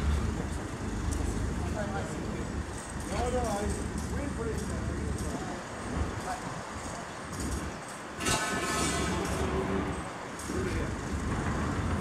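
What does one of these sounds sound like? Men talk quietly at a distance outdoors.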